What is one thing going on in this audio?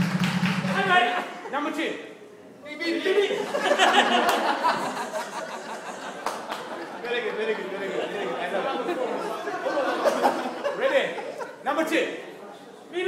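Several men talk and laugh close by.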